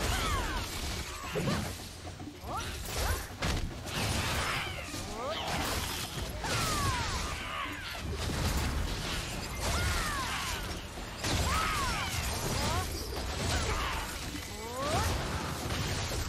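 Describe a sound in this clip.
Creatures shriek as they are hit.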